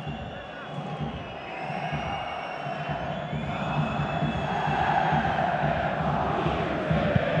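A stadium crowd roars and chants steadily, growing louder.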